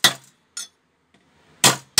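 Metal is struck with a hammer in sharp, ringing blows.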